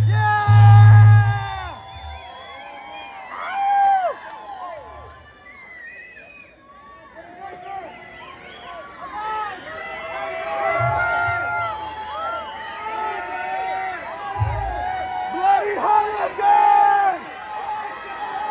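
A crowd cheers and whistles loudly in a large hall.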